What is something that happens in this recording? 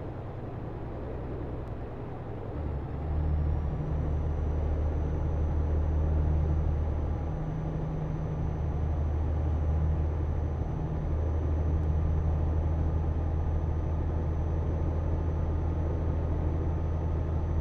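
A truck engine drones steadily, growing louder after a few seconds.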